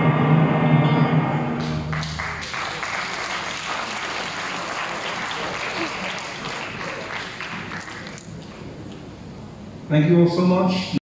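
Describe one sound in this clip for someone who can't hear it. A man speaks through a loudspeaker in a large echoing hall.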